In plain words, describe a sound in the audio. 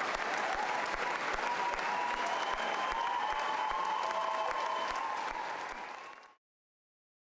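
A large crowd of men and women sings together in an echoing hall.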